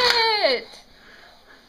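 A baby squeals close by with a falling cry.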